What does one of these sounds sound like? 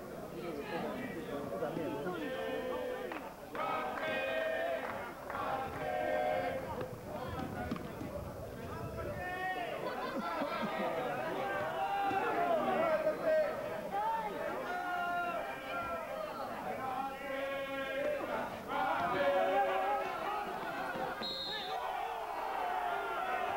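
A crowd of men and women chatters and calls out nearby outdoors.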